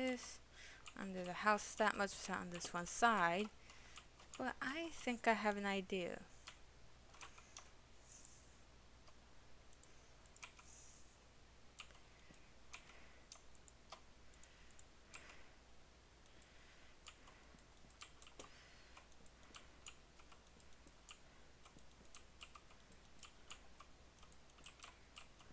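Blocks in a game are chopped with soft, repeated clicks.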